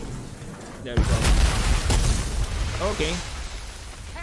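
A deep rumble roars.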